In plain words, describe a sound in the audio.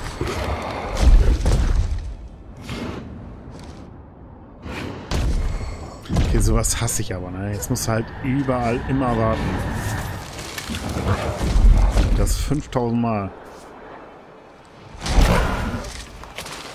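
Heavy blows thud and boom.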